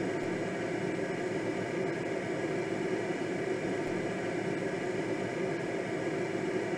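Air rushes steadily past a glider's canopy in flight.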